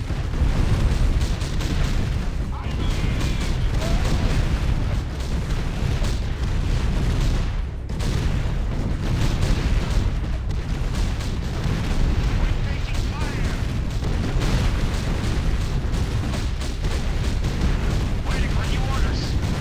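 Game explosions boom.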